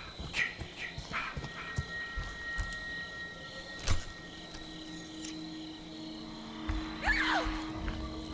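Footsteps crunch on leaves and grass.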